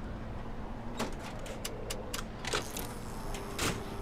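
A metal cabinet door clanks open.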